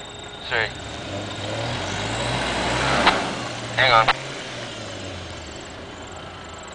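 A vehicle engine revs as it drives slowly through mud.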